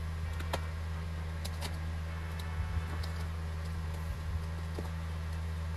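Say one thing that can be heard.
A blade scrapes and slices through packing tape on cardboard.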